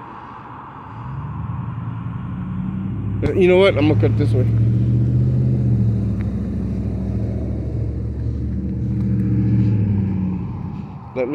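A car engine hums as a car drives past nearby.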